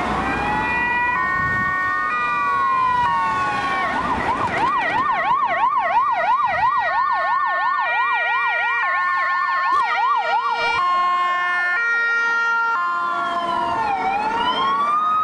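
An ambulance's two-tone siren sounds.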